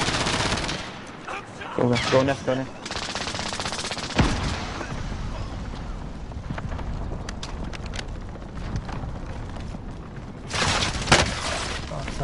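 Rifle shots ring out in sharp bursts.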